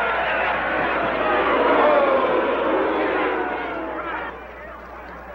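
A large crowd cheers and shouts loudly in an echoing hall, then quiets down.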